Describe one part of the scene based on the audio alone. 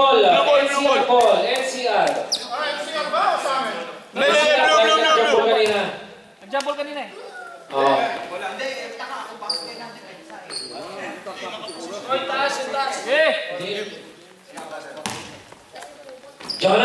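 Men call out and talk loudly in a large echoing hall.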